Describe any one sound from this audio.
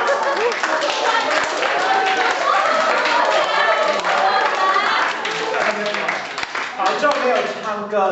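A crowd of young men and women chatter and laugh loudly nearby.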